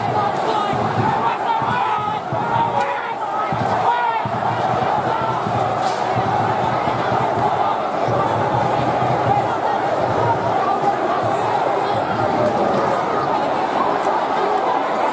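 A large crowd of men shouts and chants loudly in an open stadium.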